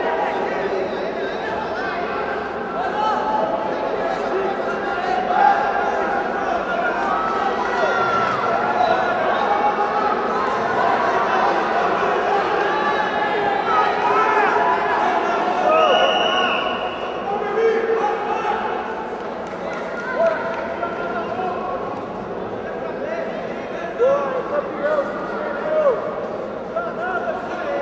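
A crowd of spectators shouts and cheers throughout, echoing in a large hall.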